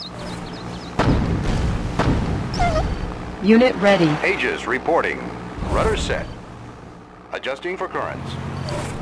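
Guns fire in short bursts with booming blasts.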